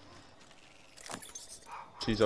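A short click sounds as an item is picked up.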